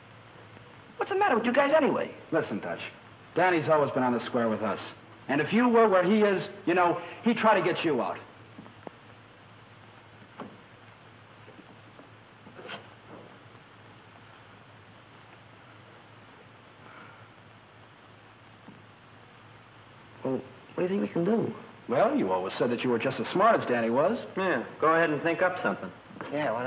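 A young man speaks insistently, close by.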